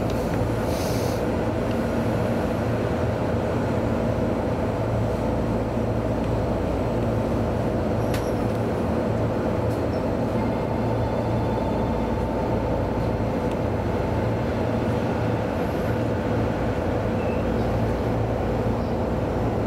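A train's motor hums steadily from inside the cab.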